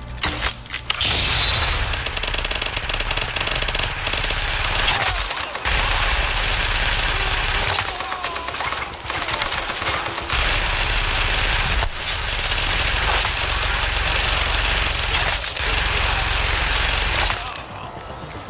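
Gunfire rattles in loud, rapid bursts.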